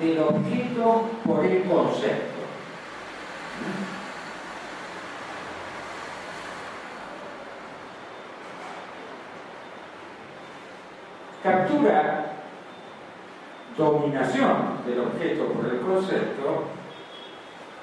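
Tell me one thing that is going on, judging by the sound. An elderly man speaks calmly into a microphone through loudspeakers in an echoing room, pausing often.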